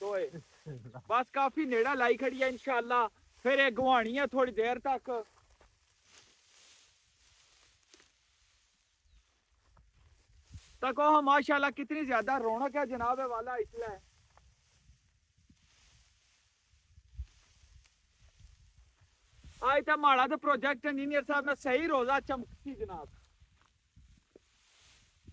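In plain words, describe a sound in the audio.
Dry straw rustles and crunches as it is gathered and tossed onto a pile.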